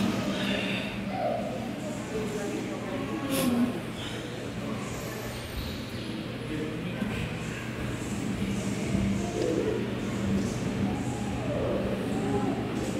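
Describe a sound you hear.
People murmur quietly in a large echoing hall.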